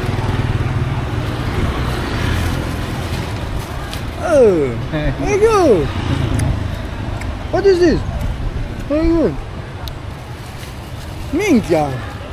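Traffic hums on a busy street.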